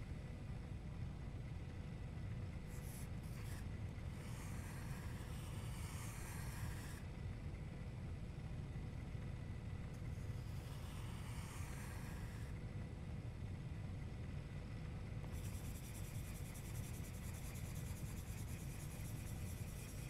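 A pencil scratches on paper.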